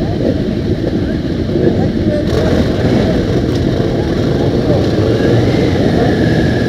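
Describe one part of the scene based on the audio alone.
Motorcycle engines rev up and down.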